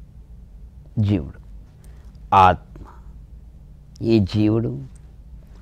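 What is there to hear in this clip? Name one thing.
An elderly man chants slowly and calmly into a microphone, with long pauses.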